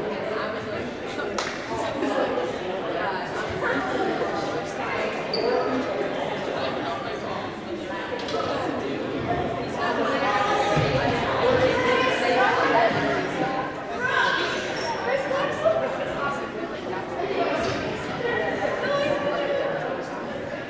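Many young people chatter and call out across a large echoing gym.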